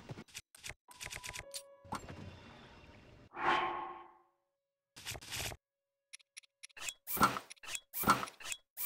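Short menu clicks and chimes sound as items are scrolled and selected.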